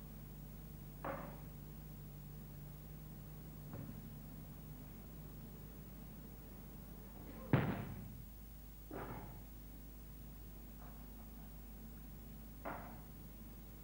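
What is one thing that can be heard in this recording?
Objects clatter and thump on a table.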